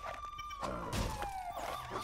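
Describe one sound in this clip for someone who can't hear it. Plastic bricks clatter and break apart.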